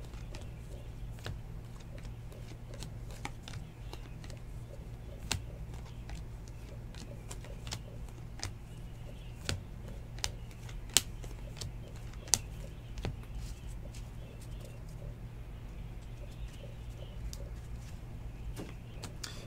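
Trading cards click and slide against each other as they are flipped through.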